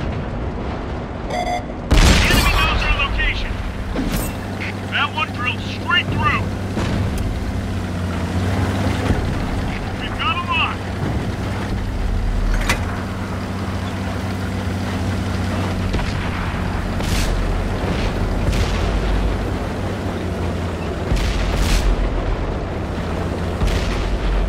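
A tank engine rumbles steadily as it drives.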